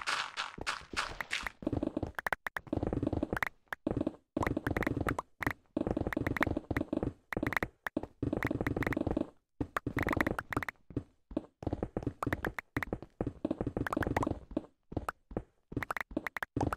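Stone blocks crack and crumble in quick bursts.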